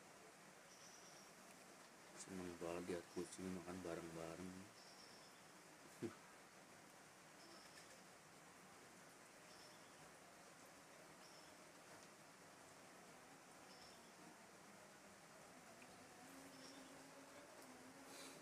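Several cats crunch dry food close by.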